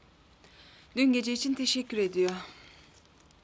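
A second woman answers calmly, close by.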